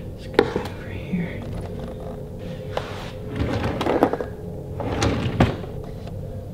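A lamp knocks and clatters as it is handled close by.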